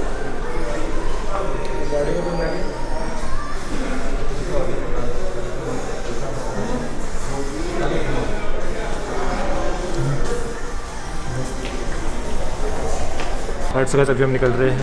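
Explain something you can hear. Several people chat and laugh nearby.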